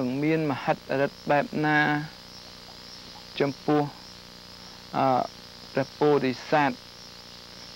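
A young man speaks calmly and slowly, close by, in short phrases.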